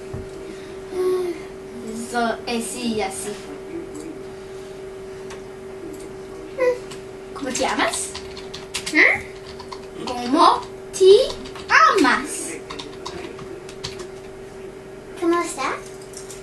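A second young girl talks in reply close by.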